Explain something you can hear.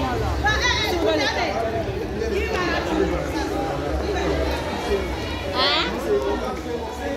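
A crowd of young people chatters and calls out nearby outdoors.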